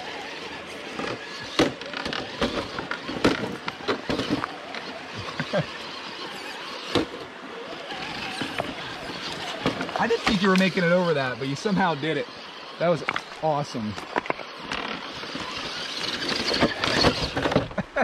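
A toy truck clatters and knocks over rocks.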